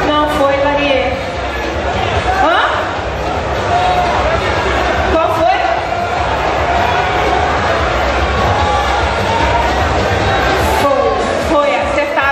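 Loud pop music plays with a heavy, steady beat.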